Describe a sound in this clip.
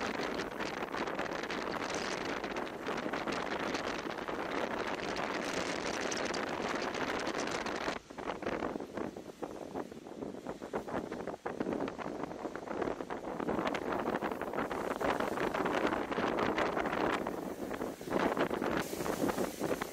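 Rough sea waves surge and crash against a wall.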